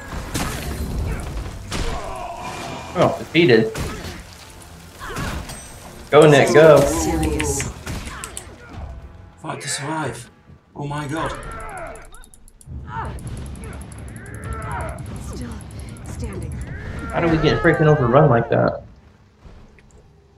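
Fiery blasts and spell effects crackle and boom in a fight.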